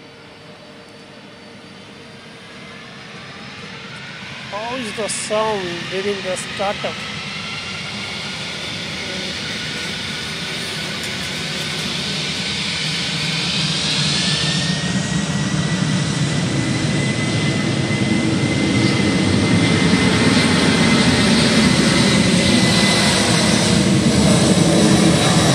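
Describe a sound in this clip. A jet airliner's engines roar and grow steadily louder as it takes off.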